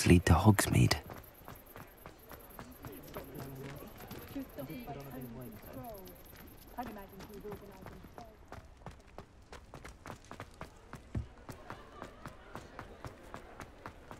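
Footsteps tap on cobblestones, speeding up to a run.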